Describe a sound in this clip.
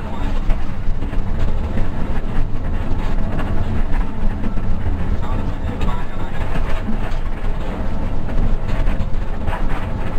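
A bus engine rumbles steadily from inside the cabin.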